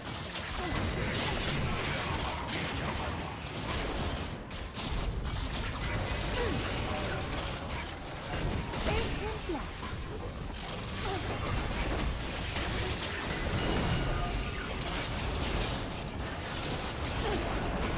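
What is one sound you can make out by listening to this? Blades clash and hit repeatedly.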